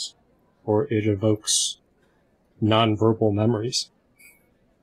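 A man speaks with animation over an online call, in short bursts.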